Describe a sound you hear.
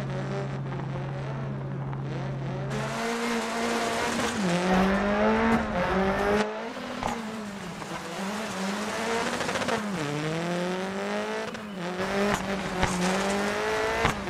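A rally car engine revs hard, rising and dropping in pitch as gears change.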